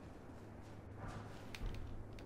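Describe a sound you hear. A soft chime rings as an item is picked up.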